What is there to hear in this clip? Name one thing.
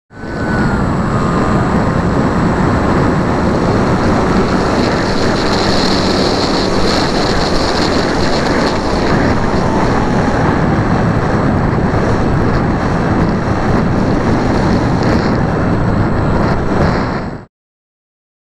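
A small electric motor whines steadily.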